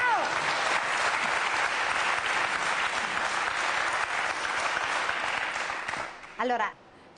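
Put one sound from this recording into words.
A studio audience applauds loudly.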